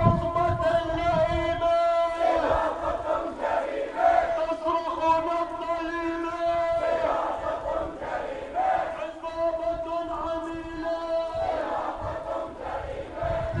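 A crowd of marchers chants loudly in unison outdoors.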